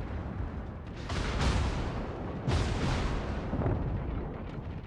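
Heavy naval guns boom in rapid bursts.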